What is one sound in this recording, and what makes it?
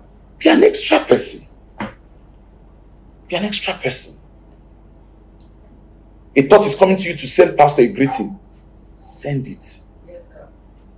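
A middle-aged man speaks with animation into a close microphone, in short bursts with pauses.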